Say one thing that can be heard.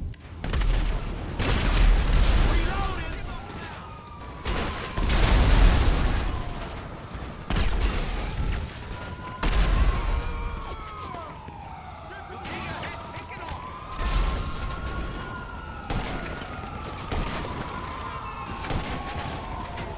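Guns fire in loud bursts.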